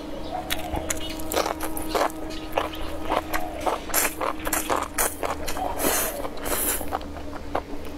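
A young woman slurps noodles loudly and noisily, close to a microphone.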